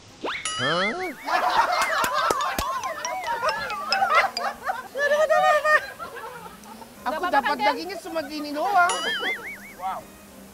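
A woman talks and laughs excitedly close by.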